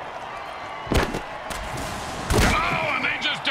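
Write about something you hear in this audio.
Armoured players crash together with heavy thuds.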